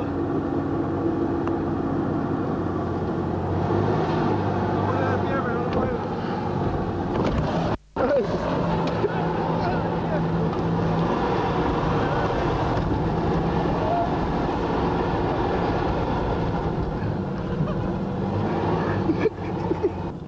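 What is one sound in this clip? Sand hisses and scrapes under a sliding rider.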